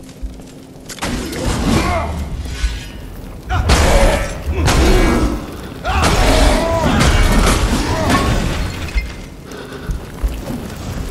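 Heavy weapons clash and strike in a fierce fight.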